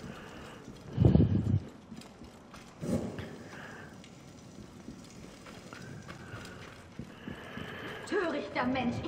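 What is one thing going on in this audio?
A torch flame crackles and flickers.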